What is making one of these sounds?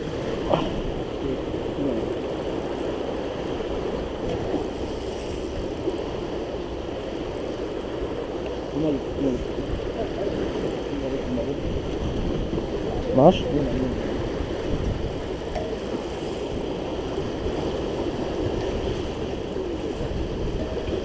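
Water churns and rushes below.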